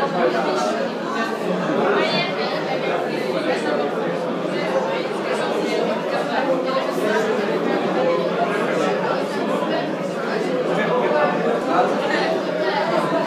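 A crowd of young men chatter and talk over one another in an echoing hall.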